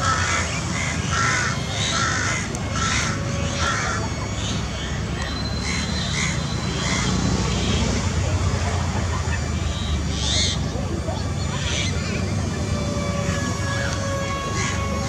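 A jet plane roars overhead with a steady, low rumble.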